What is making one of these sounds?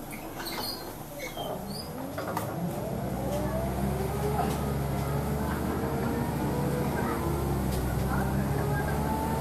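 A bus rattles and creaks as it moves.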